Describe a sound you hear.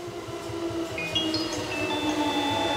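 Train wheels squeal high on the rails.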